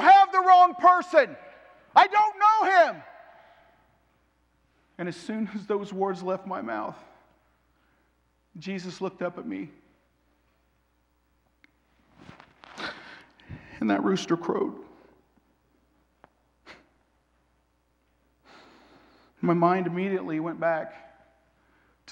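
A man speaks dramatically into a microphone, pausing between phrases.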